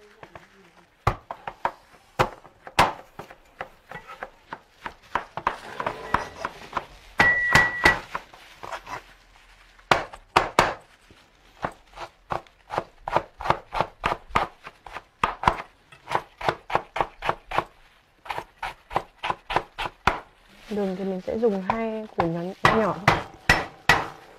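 A knife chops rapidly on a cutting board.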